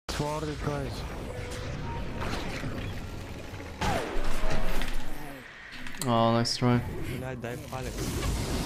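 Magic spells whoosh and crackle in a fast battle.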